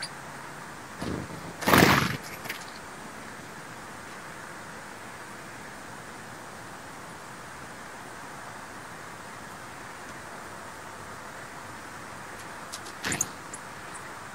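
Small birds' wings flutter as they take off.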